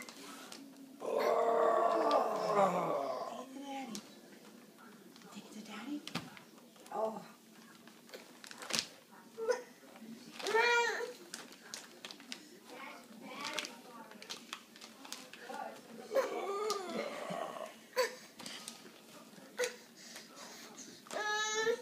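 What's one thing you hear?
A pack of plastic bottles knocks and crinkles against a wooden floor.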